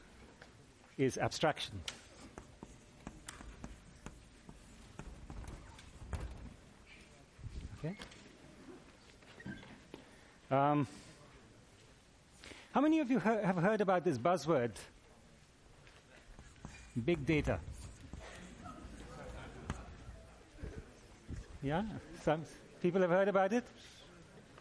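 A man lectures through a clip-on microphone.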